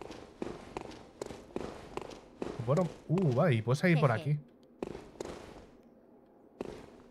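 Heavy footsteps thud steadily on stone.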